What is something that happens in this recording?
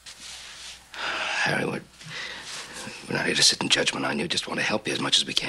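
An older man speaks in a low, serious voice close by.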